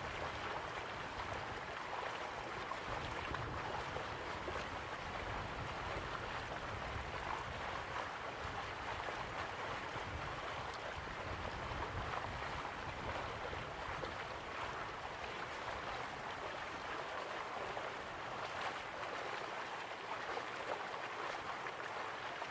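Waterfalls rush and splash steadily in the distance.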